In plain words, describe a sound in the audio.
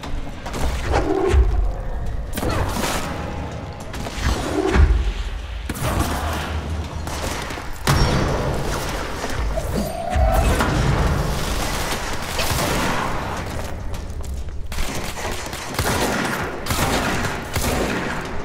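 Explosions boom with deep rumbling.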